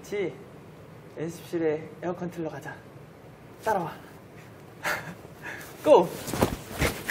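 A young man talks cheerfully and close up, with laughs.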